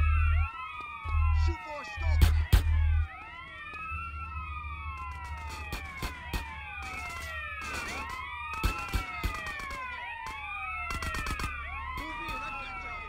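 Several police sirens wail and overlap nearby.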